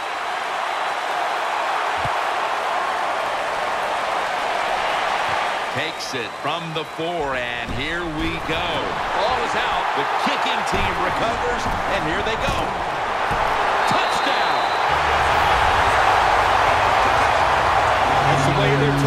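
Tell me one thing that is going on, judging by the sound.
A large crowd roars and cheers steadily in a stadium, growing louder toward the end.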